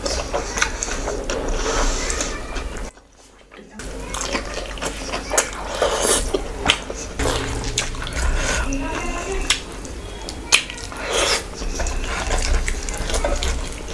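Fingers tear crisp fried fish apart.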